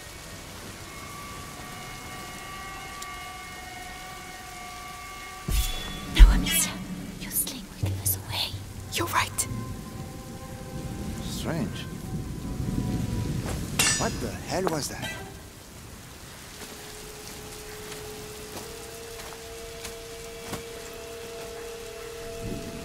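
A fire crackles softly nearby.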